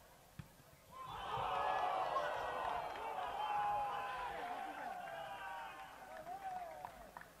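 A crowd cheers loudly as a goal is scored.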